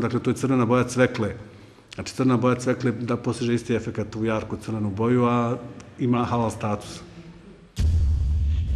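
A middle-aged man speaks with animation into a nearby microphone.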